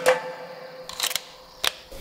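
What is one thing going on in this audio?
A rifle bolt clicks as it slides open.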